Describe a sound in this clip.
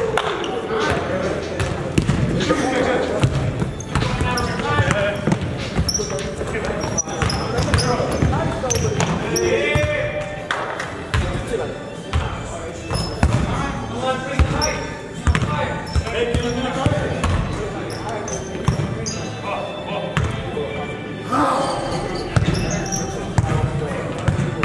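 A basketball bounces with hollow thuds in a large echoing gym.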